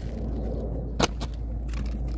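A piece of plywood is set down on asphalt shingles with a knock.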